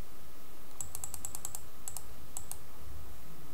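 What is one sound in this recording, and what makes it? Dice rattle and clatter as they tumble.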